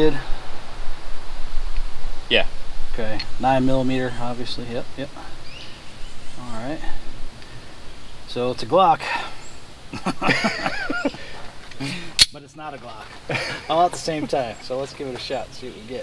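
A man talks calmly, close by, outdoors.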